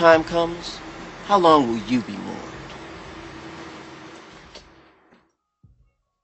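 A man sings a long note that fades away into a reverberant decay.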